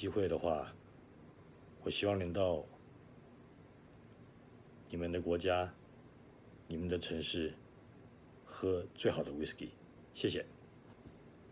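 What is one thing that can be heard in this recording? A middle-aged man speaks calmly and close by, in short phrases with pauses.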